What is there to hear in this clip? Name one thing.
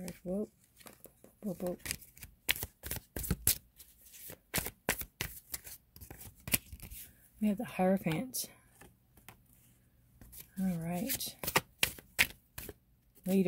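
Playing cards shuffle with quick soft flicks.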